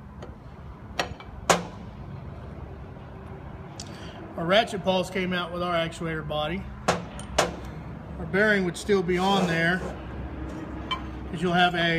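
Metal parts clink and knock against a hard surface.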